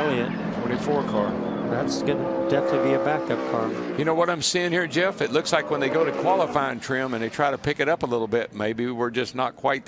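A race car engine hums as the car rolls slowly along the track.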